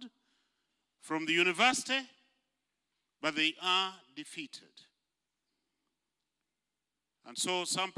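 An elderly man preaches with animation into a microphone, in short bursts with pauses.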